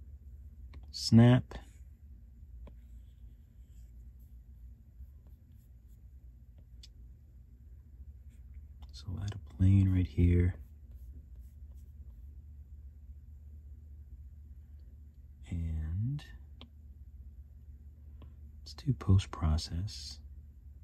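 A stylus taps and slides on a tablet's glass.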